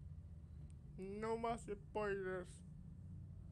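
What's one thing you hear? A man speaks briefly and calmly.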